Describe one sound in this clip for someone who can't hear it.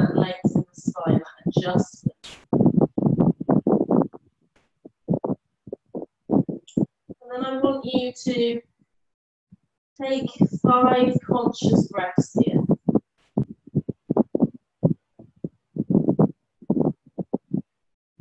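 A woman speaks calmly and slowly through an online call.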